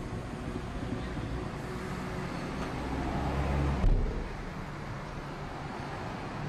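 A car engine idles with a low rumble, heard from inside the car.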